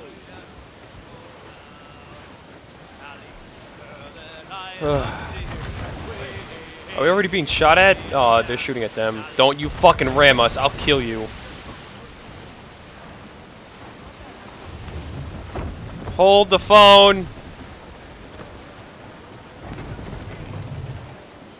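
Ocean waves wash and crash against a sailing ship.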